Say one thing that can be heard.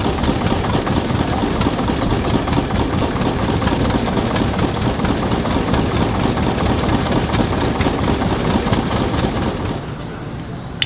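A vintage engine runs with a steady, loud chugging.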